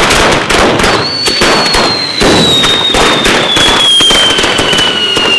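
Fireworks hiss and whistle as they spin.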